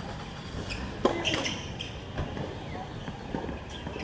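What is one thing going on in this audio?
A tennis ball bounces on a hard court a few times.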